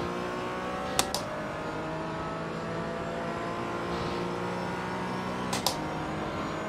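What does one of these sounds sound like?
A gearbox clicks sharply as the car shifts up.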